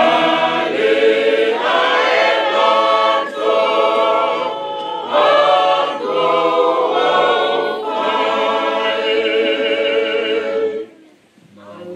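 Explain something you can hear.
A congregation sings a hymn together in a large, echoing hall.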